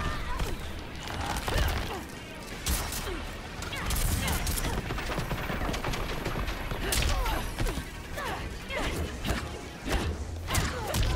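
Fighters' blows and magic blasts crack and whoosh in quick bursts.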